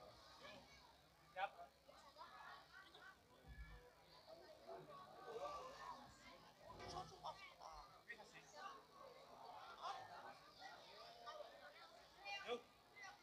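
A crowd of children chatters and calls out all around, outdoors.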